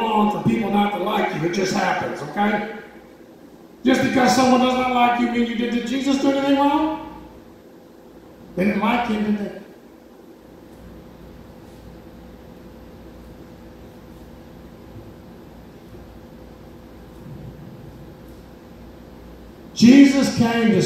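A man speaks into a microphone through a loudspeaker, with long pauses.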